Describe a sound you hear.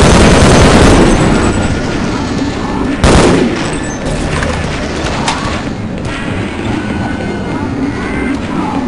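A large machine hums with a deep, steady rumble.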